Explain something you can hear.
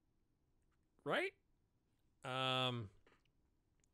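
A man speaks expressively into a close microphone.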